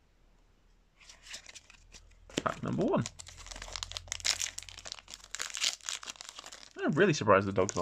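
A foil wrapper crinkles and rustles.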